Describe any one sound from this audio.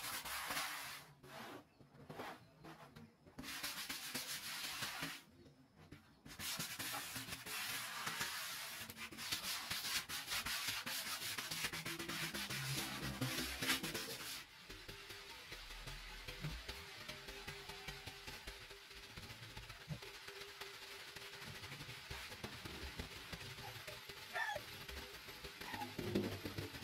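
Sandpaper rubs back and forth over wood with a steady scratchy hiss.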